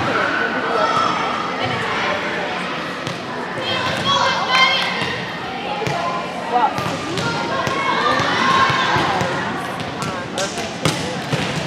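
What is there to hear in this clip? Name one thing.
Girls chatter and call out across a large echoing gym.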